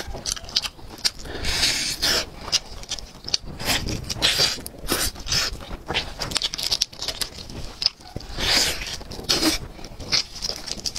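Crispy roast chicken skin tears and crackles as it is pulled apart.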